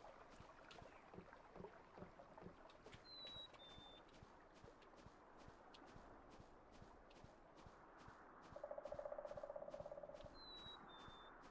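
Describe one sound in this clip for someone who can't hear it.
Footsteps patter steadily along a dirt path.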